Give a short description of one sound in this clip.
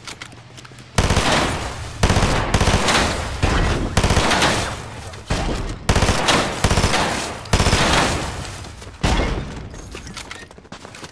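Rifle shots fire in loud rapid bursts.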